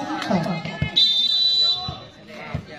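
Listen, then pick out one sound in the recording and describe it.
A referee blows a whistle in one long blast.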